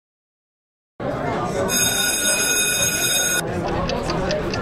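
Pens scratch on paper.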